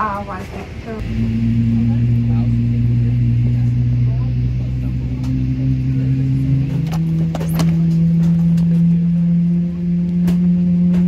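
A jet engine hums steadily, heard from inside an aircraft cabin, and its pitch steps up.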